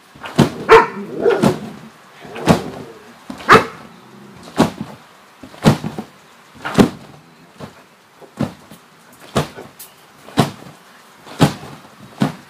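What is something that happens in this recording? A trampoline mat thumps and creaks rhythmically.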